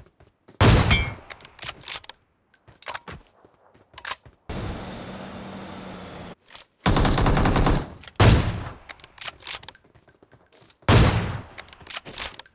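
Loud rifle shots crack and echo, a few seconds apart.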